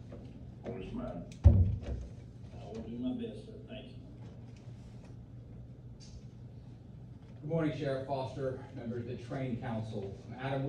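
A man speaks calmly to a small audience in a room, heard from a short distance.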